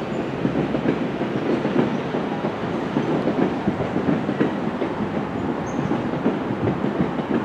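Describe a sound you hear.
A train approaches on the rails with a low, steady rumble.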